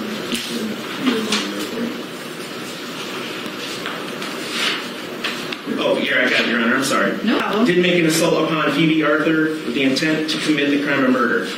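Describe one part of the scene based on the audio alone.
Paper pages rustle and flip.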